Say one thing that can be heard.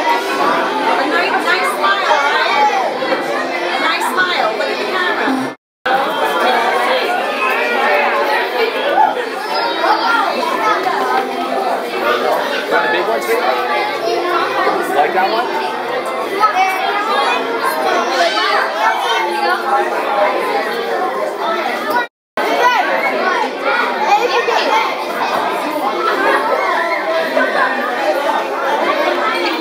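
A crowd of children and adults chatter indoors.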